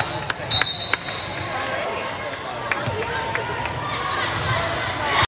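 Young women chatter and talk as they walk across the court.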